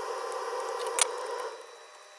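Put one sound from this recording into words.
A plastic connector clicks as it is pulled loose.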